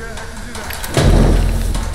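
A fire flares up with a whoosh and crackles.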